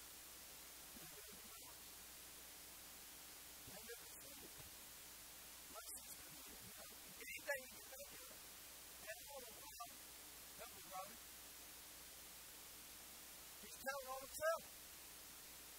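A man speaks with animation in short bursts between pauses.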